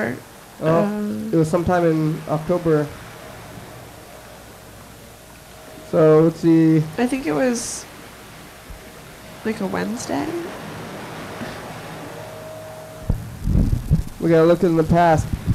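A young woman speaks in short bursts through a microphone.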